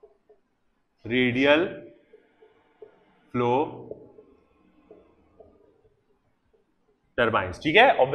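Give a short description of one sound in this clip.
A man speaks clearly into a close microphone, lecturing in short bursts.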